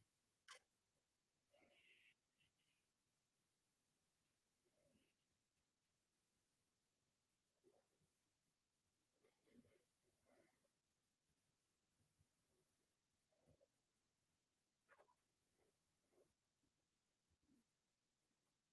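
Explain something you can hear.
A young woman murmurs briefly and quietly into a close microphone.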